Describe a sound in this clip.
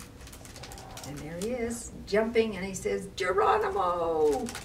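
A woman reads aloud calmly and expressively, close by.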